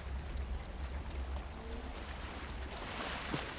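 Water rushes in a stream.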